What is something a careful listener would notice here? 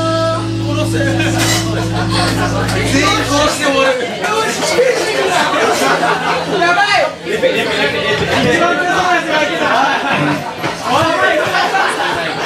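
A live rock band plays loudly with electric guitars and drums.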